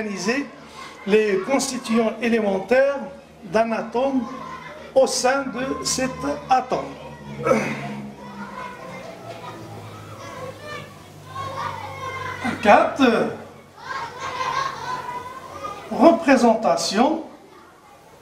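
A middle-aged man speaks calmly and clearly, as if teaching, close to a microphone.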